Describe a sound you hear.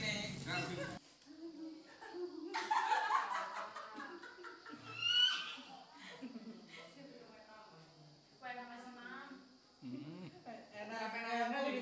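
Young men and women talk and laugh together close by.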